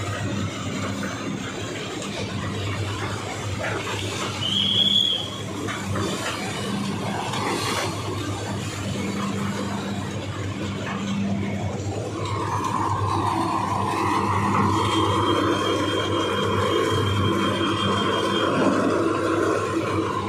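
Tractor engines idle with a low steady rumble.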